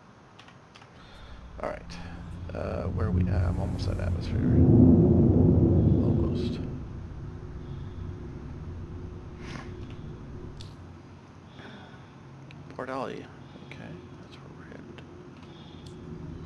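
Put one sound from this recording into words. A spaceship engine rumbles, swelling to a loud roar and then settling into a steady low hum.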